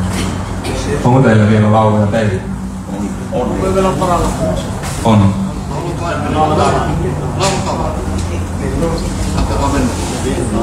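A young man speaks calmly into a microphone through loudspeakers.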